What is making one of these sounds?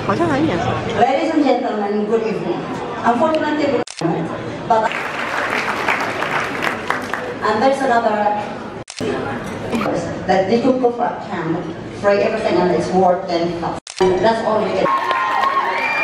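An elderly woman speaks with animation into a microphone, heard over loudspeakers in a large echoing hall.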